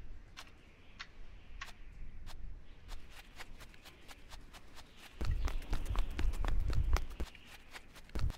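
Footsteps crunch steadily on sand.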